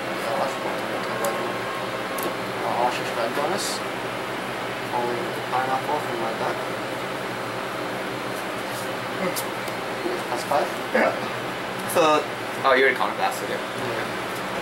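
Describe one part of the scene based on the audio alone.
Playing cards are slapped and slid onto a play mat.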